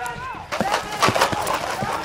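Paintball markers fire in rapid popping bursts.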